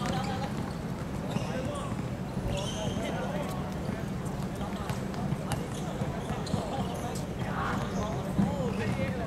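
Young men shout and call out to each other outdoors.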